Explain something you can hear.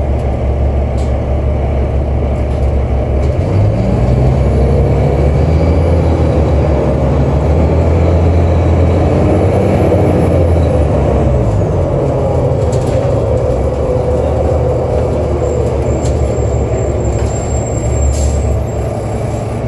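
Bus panels rattle and clatter as the bus moves.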